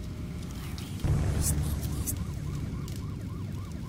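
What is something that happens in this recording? A fire roars with a low rumble.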